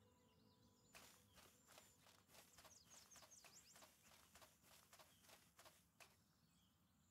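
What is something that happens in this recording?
Footsteps crunch along a path at a steady pace.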